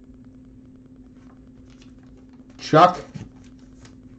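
Trading cards rustle softly as hands shuffle them.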